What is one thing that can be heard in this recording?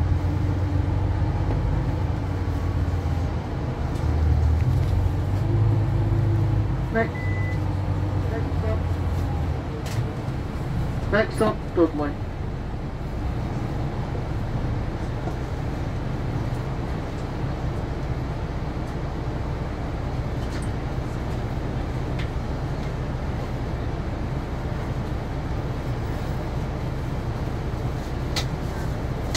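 A bus engine hums low and steady as the bus drives.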